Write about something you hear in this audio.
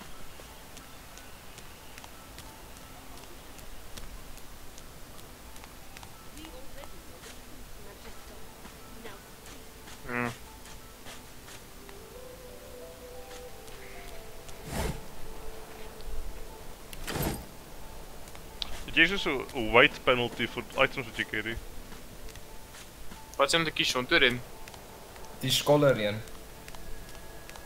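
Footsteps crunch softly along a gravel path.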